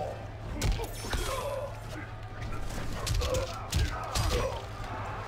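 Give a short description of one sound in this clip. Heavy punches and kicks land with sharp thuds and whooshes.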